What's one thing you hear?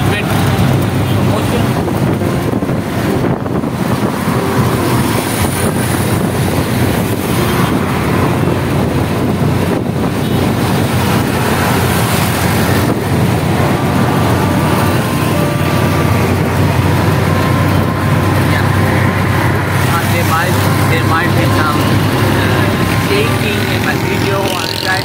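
A rickshaw engine rattles and drones steadily up close.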